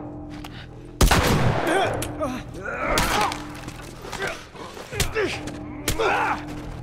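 A man grunts in a close fight.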